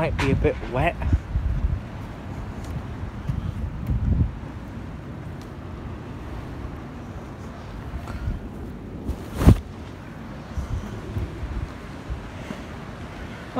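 Footsteps scuff on stone pavement.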